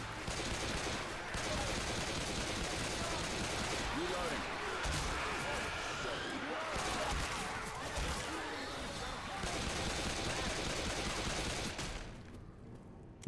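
Monsters snarl and shriek close by.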